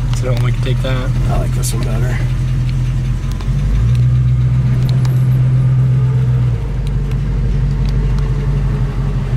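A car engine idles with a deep, steady rumble.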